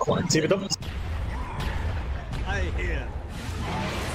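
Game spell effects burst and whoosh in quick succession.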